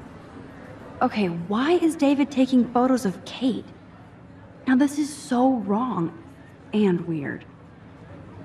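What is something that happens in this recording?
A young woman speaks quietly to herself, close by.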